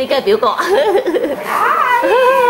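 A young boy laughs and chatters close by.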